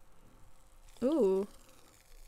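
A young person makes a short rising and falling hum.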